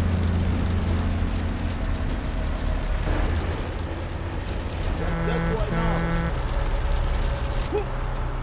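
A fire burns with a low roar.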